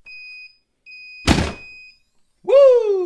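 A heat press timer beeps.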